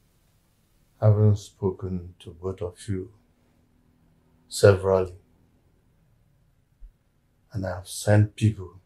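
An elderly man speaks slowly and weakly, close by.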